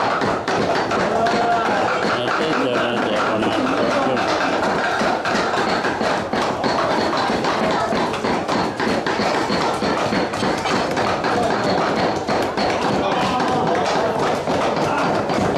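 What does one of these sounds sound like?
Several men talk and chatter nearby.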